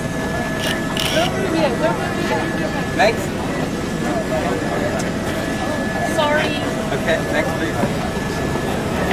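A crowd of men and women talk and murmur nearby.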